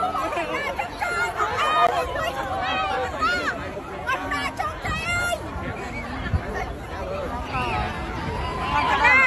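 A crowd of young women scream and shout excitedly close by.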